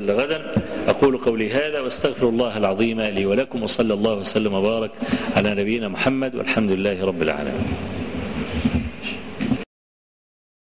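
An elderly man speaks with feeling into a microphone.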